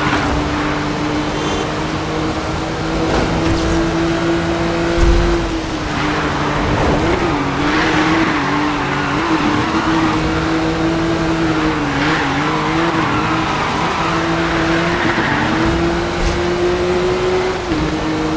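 A sports car engine roars steadily at high speed, its pitch wavering as it shifts and drifts.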